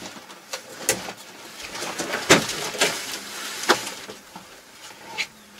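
Boots knock and thump on metal steps as someone climbs out of a tractor cab.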